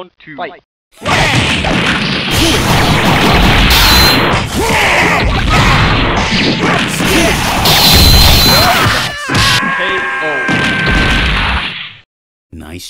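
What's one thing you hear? Fiery explosions burst and roar.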